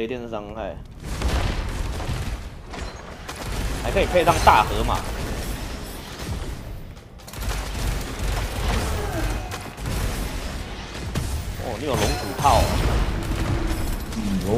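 Gunfire and energy blasts crackle and boom in a video game.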